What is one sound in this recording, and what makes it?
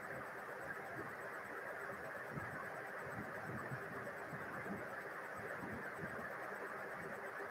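A woman speaks quietly and calmly nearby.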